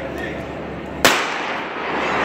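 A starting pistol fires once with a sharp crack.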